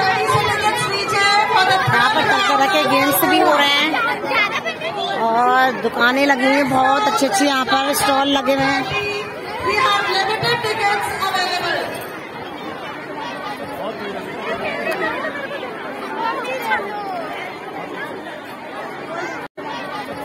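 A crowd chatters outdoors.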